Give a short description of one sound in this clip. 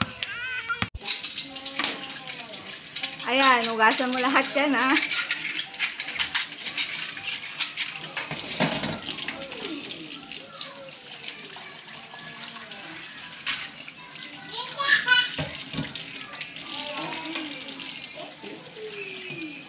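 Dishes clink and scrape as they are washed.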